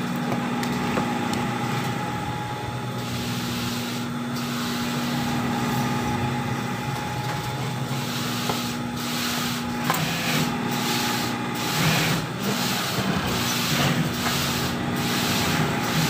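Slippery synthetic fabric rustles as hands handle it.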